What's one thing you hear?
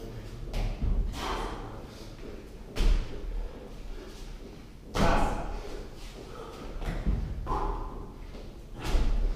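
A man breathes heavily from exertion.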